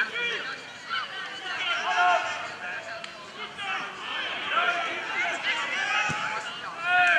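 A football is kicked with a dull thud outdoors.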